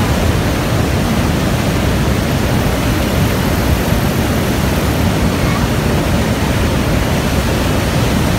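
A large waterfall roars steadily close by.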